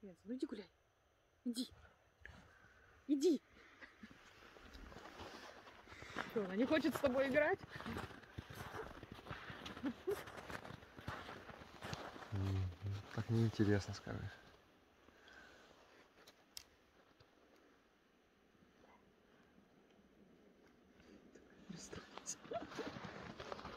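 Dogs crunch and rustle through deep snow.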